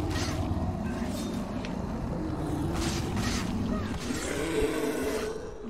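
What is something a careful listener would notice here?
A sword slashes and strikes with a heavy impact.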